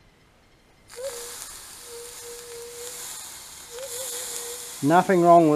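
Water hisses and sizzles on a hot surface.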